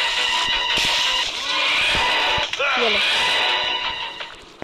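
An electric zapper crackles and buzzes.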